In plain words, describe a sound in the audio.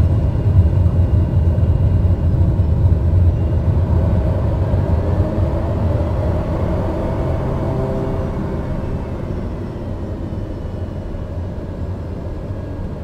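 A jet engine roars steadily as an aircraft rolls down a runway, the rumble slowly easing.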